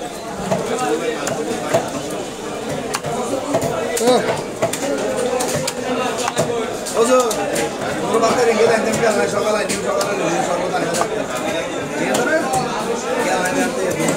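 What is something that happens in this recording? A blade knocks against a wooden block.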